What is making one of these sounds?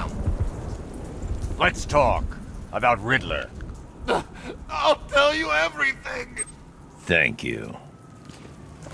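A man with a deep, low voice speaks calmly and menacingly.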